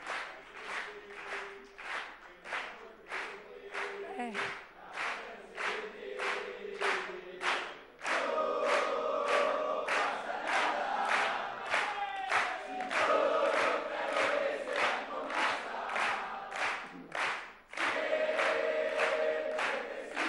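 A large crowd claps in a steady rhythm.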